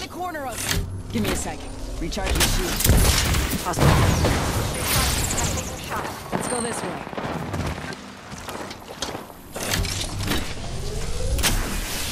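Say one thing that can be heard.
A device charges with a rising electronic whine.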